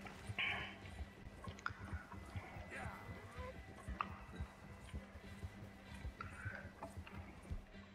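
A horse gallops over snow.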